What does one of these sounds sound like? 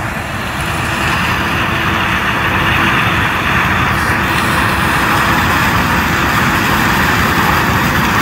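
A combine harvester's diesel engine runs under load.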